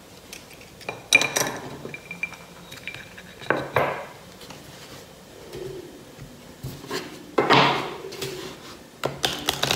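Cards tap and slide on a table.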